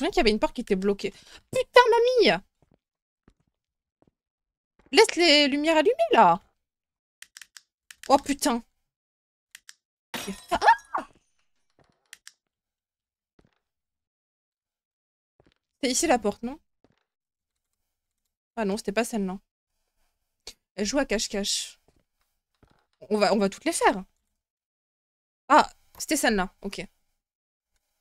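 A young woman speaks through a close microphone.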